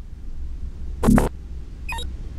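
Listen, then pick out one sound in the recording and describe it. A metal door slides open with a whoosh.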